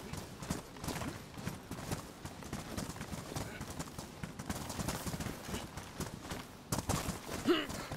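Footsteps thud quickly over grass and dirt.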